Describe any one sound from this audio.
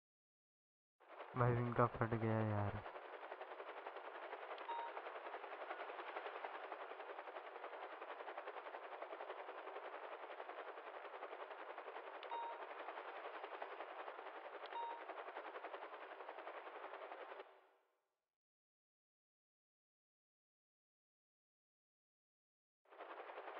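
A helicopter's rotor whirs steadily.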